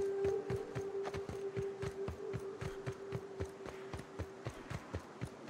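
Footsteps crunch quickly and steadily on hard ground.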